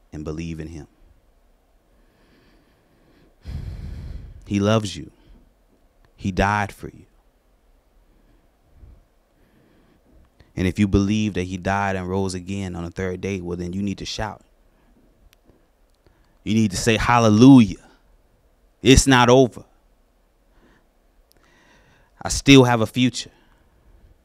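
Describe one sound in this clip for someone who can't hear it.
A man speaks into a microphone in bursts with long pauses, heard through a loudspeaker.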